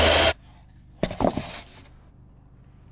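Foam boards scrape and knock as they are handled.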